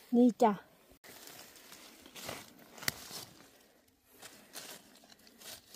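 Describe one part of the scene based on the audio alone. A knife cuts through mushroom stems.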